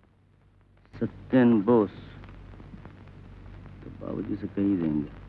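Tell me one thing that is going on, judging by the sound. A man speaks slowly and with feeling, close by.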